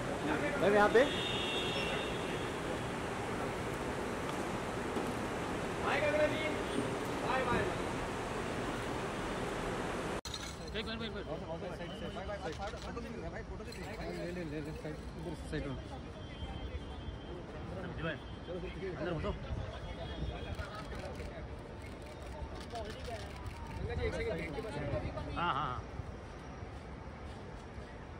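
Men call out and talk nearby.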